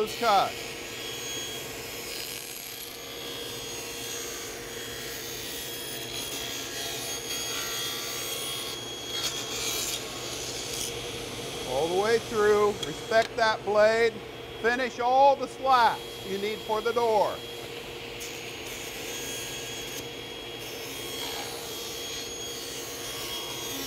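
A table saw runs with a steady whine.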